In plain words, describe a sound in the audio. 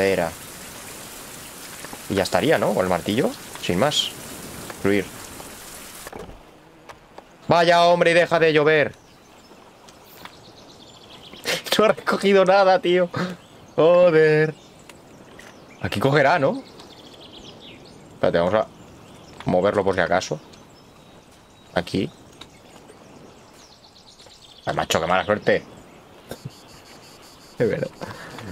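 A young man talks with animation into a close microphone, in short bursts.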